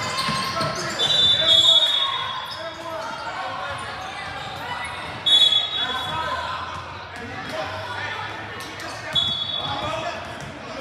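A referee blows a sharp whistle several times.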